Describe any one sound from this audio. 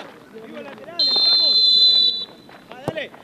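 A referee's whistle blows a long, shrill blast.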